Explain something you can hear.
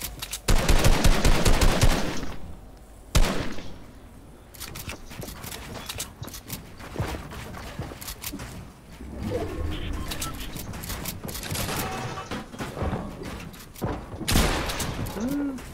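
Quick clicks and thuds of building pieces snap into place.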